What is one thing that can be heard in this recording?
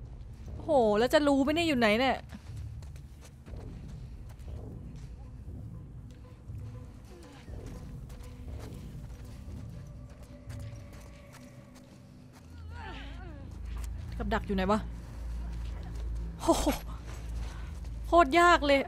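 Soft footsteps rustle through grass.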